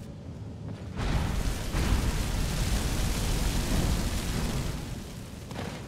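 A fire crackles and roars close by.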